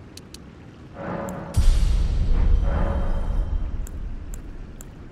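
A deep whooshing chime swells and slowly fades.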